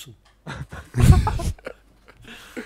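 A young man laughs loudly through a headset microphone.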